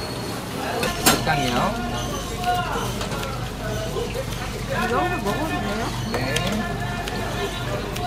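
Kitchen scissors snip through food.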